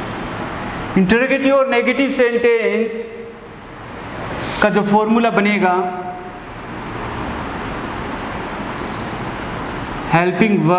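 A man speaks calmly and clearly, like a teacher explaining.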